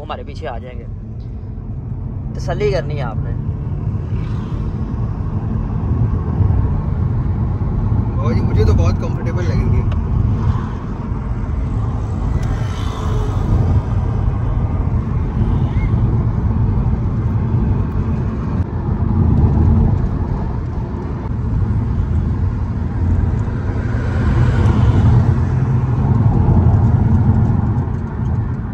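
A car engine hums and tyres rumble on the road.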